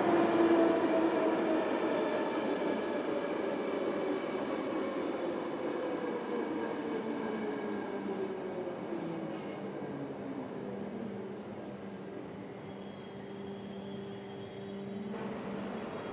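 An electric commuter train pulls away, its motors whining and falling in pitch.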